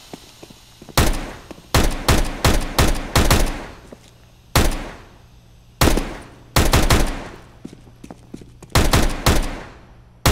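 Pistol shots fire sharply, one after another, with a short echo.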